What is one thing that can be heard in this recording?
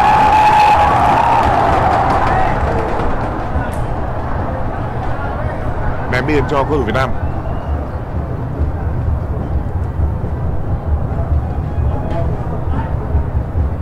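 A large stadium crowd roars and cheers throughout.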